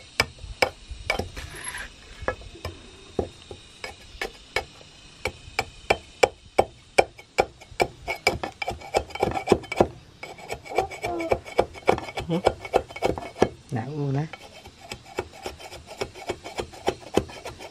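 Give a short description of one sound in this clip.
A heavy blade chops into wood with sharp, rapid knocks.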